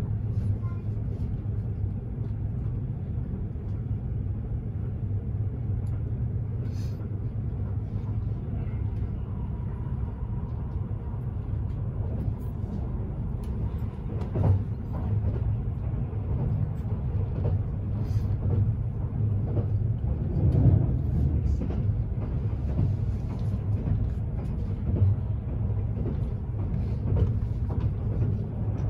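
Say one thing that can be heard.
A train rumbles steadily along the tracks, heard from inside a carriage.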